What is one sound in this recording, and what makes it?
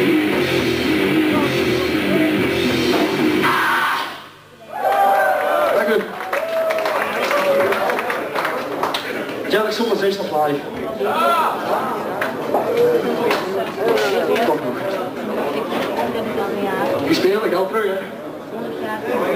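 A rock band plays loudly through amplifiers in an echoing hall.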